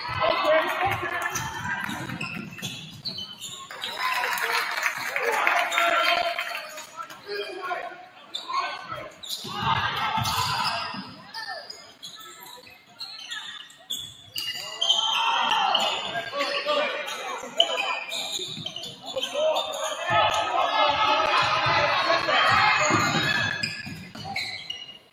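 A crowd of spectators shouts and cheers in an echoing gym.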